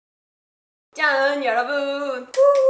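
A young woman speaks brightly and cheerfully, close to a microphone.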